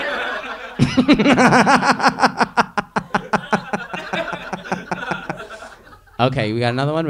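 An audience laughs and claps loudly in a room.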